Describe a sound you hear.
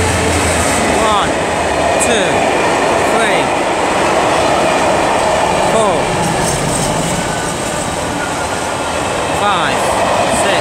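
Freight wagons clatter and squeal over the rails.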